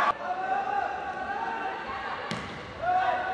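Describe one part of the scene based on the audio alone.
A volleyball is struck hard with a sharp slap.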